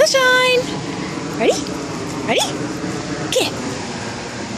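A dog yelps and whines in short rising cries.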